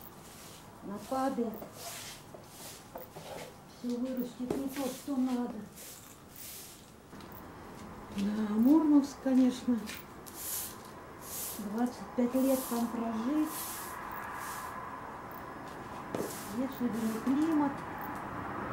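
A woman talks in short phrases nearby.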